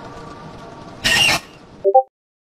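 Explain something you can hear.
A creature lets out a sudden, loud, harsh screech.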